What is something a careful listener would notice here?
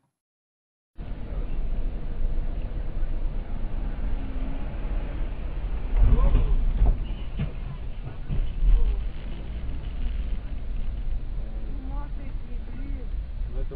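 A car engine hums steadily with road rumble from inside a moving car.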